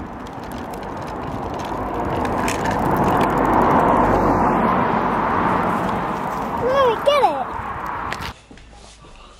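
Wheels roll over rough asphalt outdoors.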